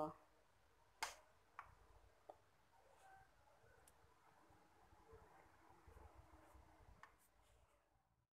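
A metal spoon clinks softly against a small bowl.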